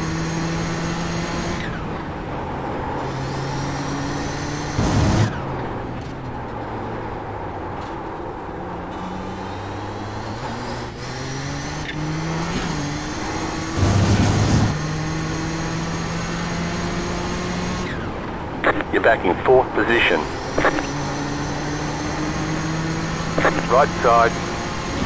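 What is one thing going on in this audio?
A racing car engine roars, rising in pitch and dropping sharply with each gear change.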